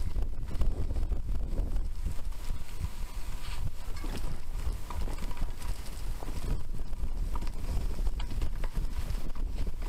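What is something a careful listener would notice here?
Bicycle tyres roll and rattle over a bumpy dirt trail.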